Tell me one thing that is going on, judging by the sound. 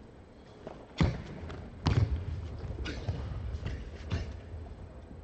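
A karate athlete's feet stamp and slide sharply on a mat.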